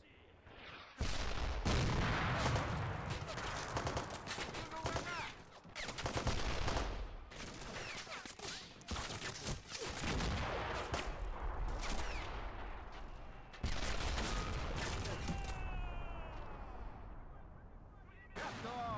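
Rifle fire crackles in rapid bursts.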